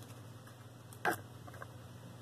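A card taps down into a paper box.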